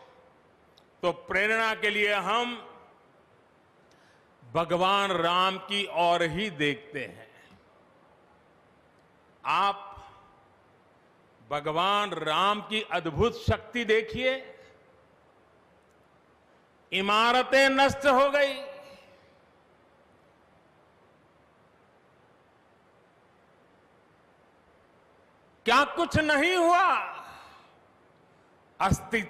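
An elderly man gives a speech through a microphone and loudspeakers, speaking slowly and forcefully in short phrases with long pauses.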